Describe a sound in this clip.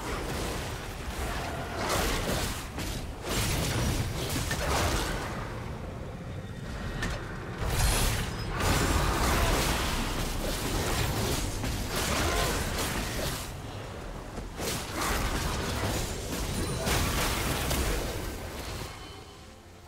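Magic spells crackle and burst in a fast, chaotic battle.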